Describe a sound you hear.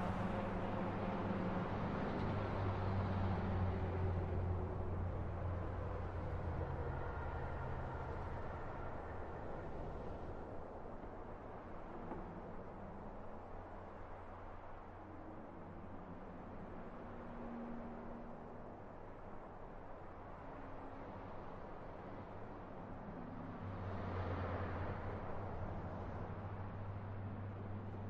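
Car engines roar past on a road, rising and fading as they go by.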